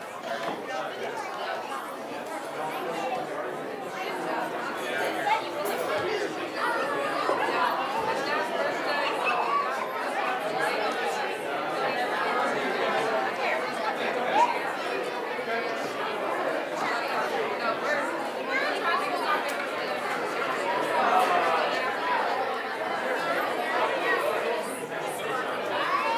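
A crowd of men and women chat and mingle all at once in an echoing hall.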